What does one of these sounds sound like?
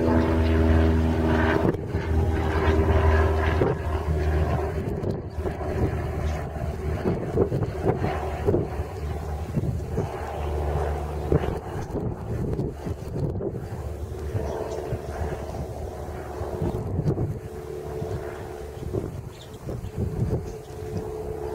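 Horses tear and chew grass close by.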